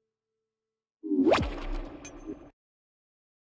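A futuristic electronic swoosh rises sharply and stops.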